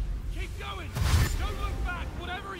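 A magic spell bursts with a loud whoosh.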